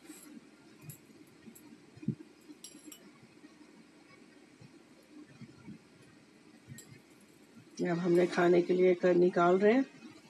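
Metal tongs clink and scrape against a plate.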